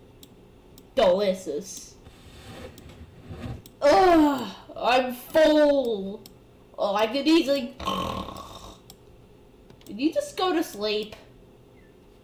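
A high-pitched cartoon voice talks with animation, heard close up.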